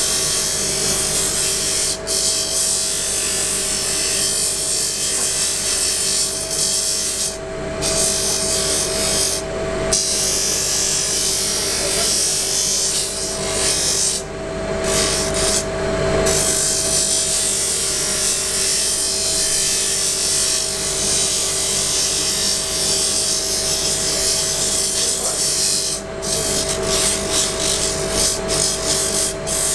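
A motor hums steadily.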